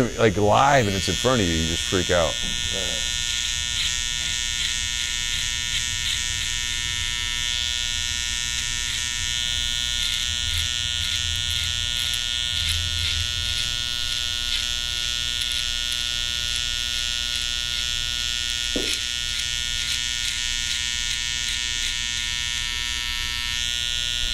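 An electric beard trimmer buzzes steadily.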